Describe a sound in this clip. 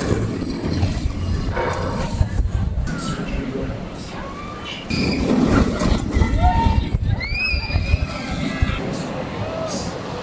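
Riders scream from a passing roller coaster.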